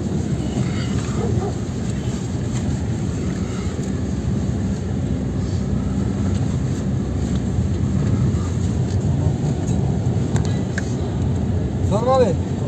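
Tyres rumble over a bumpy dirt road.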